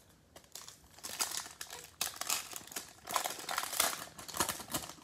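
A foil wrapper crinkles and tears as hands pull it open.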